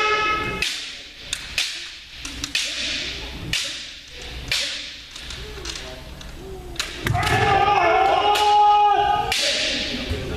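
Fighters shout loud, drawn-out battle cries.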